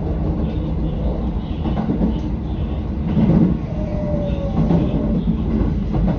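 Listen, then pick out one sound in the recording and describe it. Train wheels squeal on the rails around a curve.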